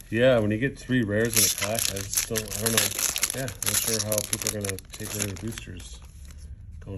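A foil wrapper crinkles and tears as hands rip open a card pack.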